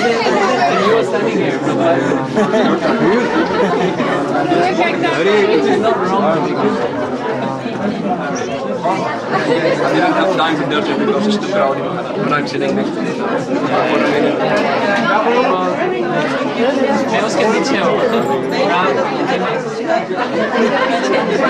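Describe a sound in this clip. Several men talk loudly over each other close by.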